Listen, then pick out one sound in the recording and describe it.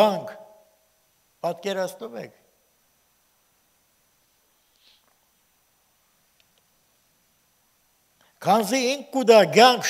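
An elderly man speaks slowly and deliberately through a microphone, with long pauses between phrases.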